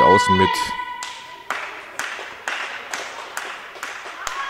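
A volleyball is struck with sharp, echoing slaps.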